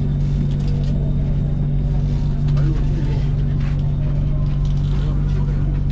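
A train hums steadily as it pulls out of an echoing station.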